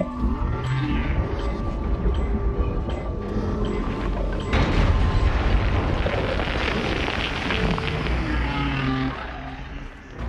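Smoke bursts out with a loud whooshing hiss.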